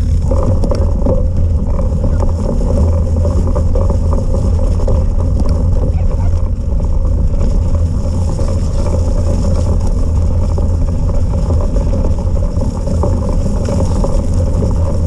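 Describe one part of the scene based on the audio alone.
A small motor whirs steadily as a vehicle drives over wet ground.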